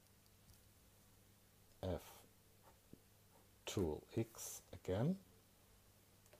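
A pen scratches faintly across paper.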